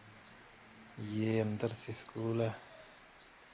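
A man talks into a phone nearby.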